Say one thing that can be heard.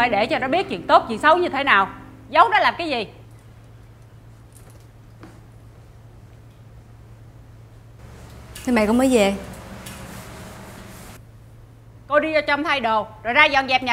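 A middle-aged woman speaks up close with animation.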